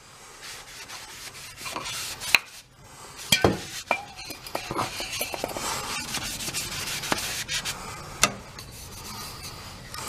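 A cloth rubs along a wooden handle.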